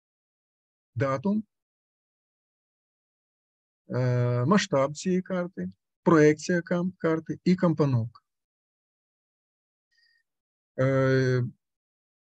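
A man speaks calmly into a microphone, as if lecturing over an online call.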